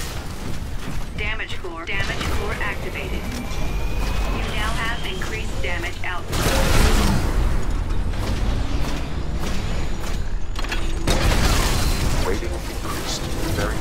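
Heavy gunfire rattles in rapid bursts.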